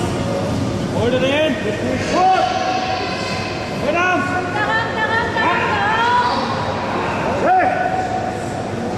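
A crowd of men shouts loud encouragement in a large echoing hall.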